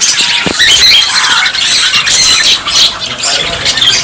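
Small birds chirp and whistle close by.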